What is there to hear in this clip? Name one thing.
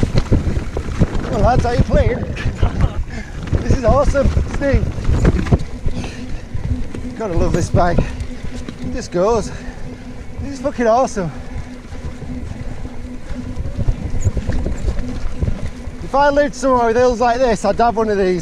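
Bike tyres rumble and rattle over a rough dirt trail.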